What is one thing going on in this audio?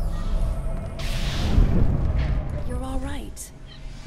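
Energy blades hum and clash in a fight.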